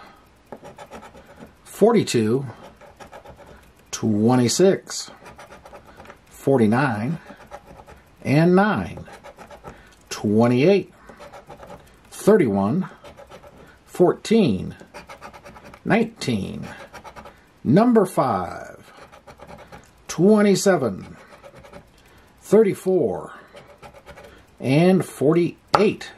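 A coin scratches repeatedly across a card.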